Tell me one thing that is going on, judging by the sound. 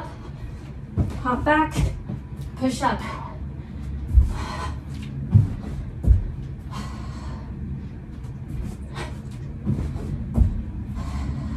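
Feet thud on a carpeted floor as a woman jumps.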